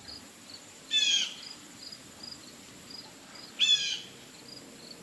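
A cat meows briefly, twice.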